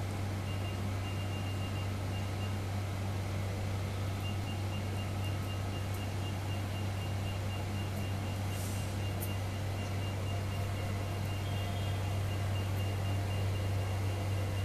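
A machine beeps in quick, even pulses.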